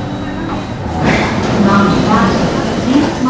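Sliding train doors rumble open.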